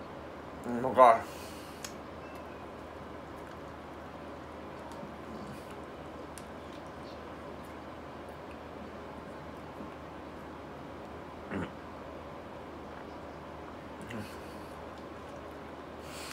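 A young man eats a banana close by, chewing wetly.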